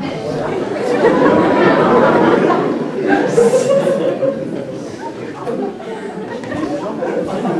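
A young woman speaks loudly from a stage in a large hall.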